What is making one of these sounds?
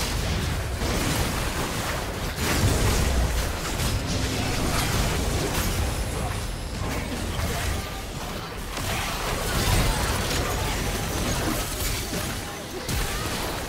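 Magic spells blast and crackle in a fast game battle.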